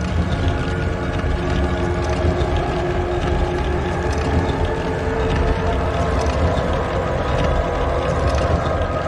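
A heavy stone block scrapes and grinds across a stone floor.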